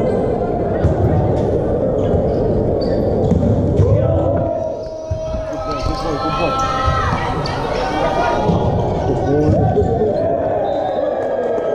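Volleyball players' hands strike the ball in a large echoing hall.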